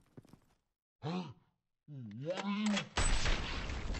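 A young man calls out in surprise, close by.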